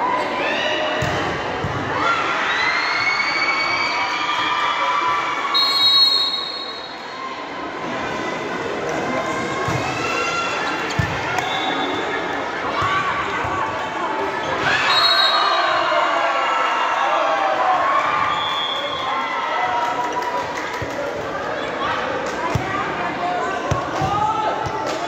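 A crowd of spectators shouts and cheers throughout in a large echoing hall.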